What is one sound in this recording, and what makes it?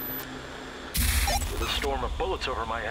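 A handheld radio crackles with a burst of static.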